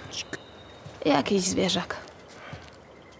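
A girl answers calmly.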